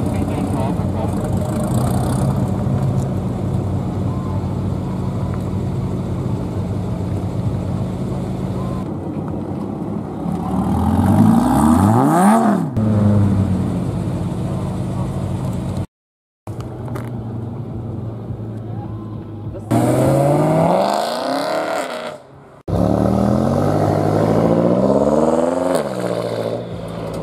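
A sports car engine idles with a deep, loud rumble.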